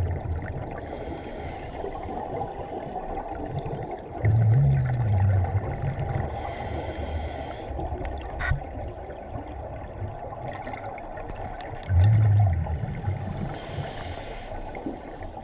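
Bubbles rush and gurgle from a diver's breathing gear underwater, again and again.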